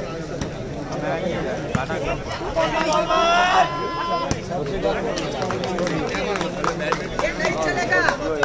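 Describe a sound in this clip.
A crowd of spectators cheers and chatters outdoors.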